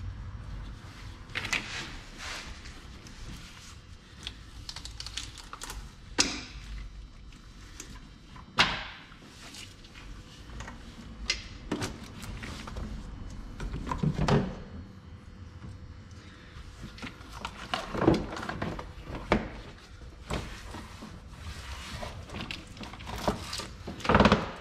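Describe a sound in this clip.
Plastic and metal engine parts click and knock.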